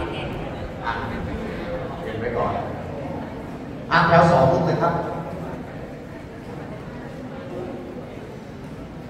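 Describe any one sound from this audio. Men's voices chant together in a large echoing hall.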